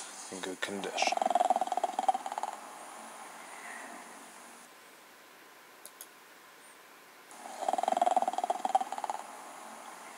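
A truck engine rumbles from a computer game's speakers.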